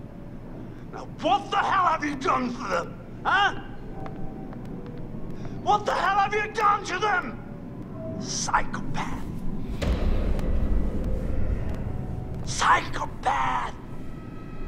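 A middle-aged man speaks tensely and angrily, close by.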